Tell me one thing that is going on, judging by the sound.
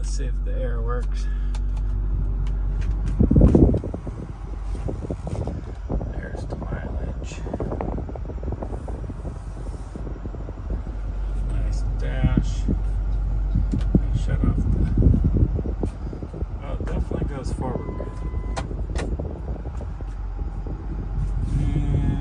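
A diesel engine idles with a steady low rumble, heard from inside the cab.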